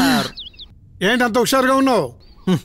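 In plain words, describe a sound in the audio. An elderly man laughs heartily.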